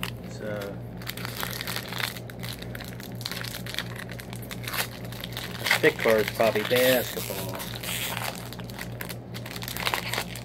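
Foil wrappers crinkle and tear as hands open them.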